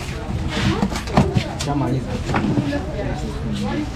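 A cardboard box scrapes and thumps as it is lifted.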